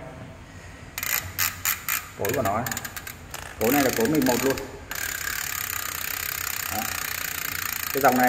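A bicycle hub's freewheel clicks and buzzes as a hand turns it.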